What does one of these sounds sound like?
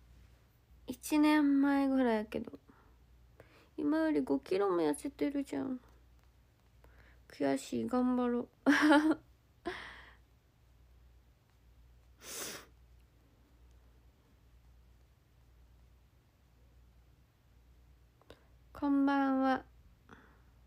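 A young woman speaks softly and playfully, close to a microphone.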